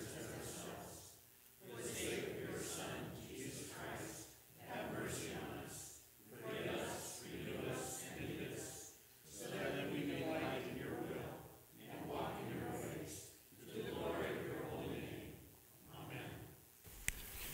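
A congregation recites aloud together in phrases in an echoing hall.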